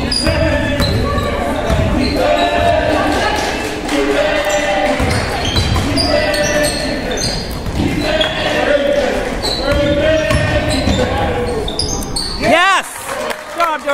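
Young people shout and call out in a large echoing hall.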